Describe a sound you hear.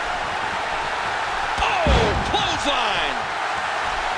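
A body slams hard onto a wrestling mat with a thud.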